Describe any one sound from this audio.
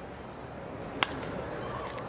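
A wooden baseball bat cracks against a ball.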